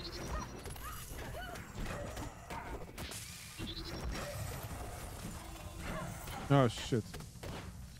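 Game weapons hit and clash in a fast fight.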